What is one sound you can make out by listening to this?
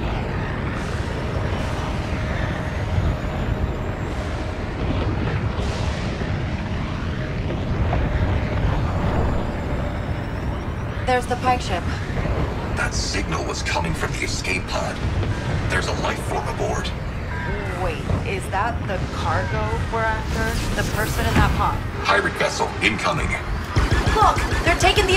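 A spaceship engine rumbles steadily.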